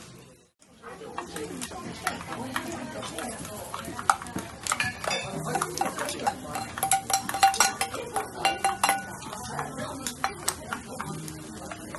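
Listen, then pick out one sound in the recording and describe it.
Metal utensils clink and scrape against a hot griddle.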